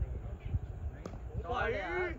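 A bat strikes a ball with a sharp crack in the distance.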